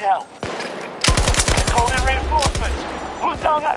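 A rifle fires rapid bursts that echo in a tunnel.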